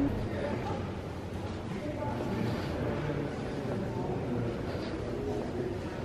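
A crowd of visitors murmurs softly in a large echoing hall.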